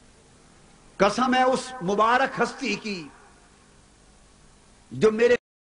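A middle-aged man speaks forcefully into a microphone over loudspeakers.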